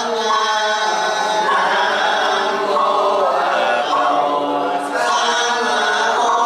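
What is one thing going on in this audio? A man chants steadily into a microphone, heard through a loudspeaker.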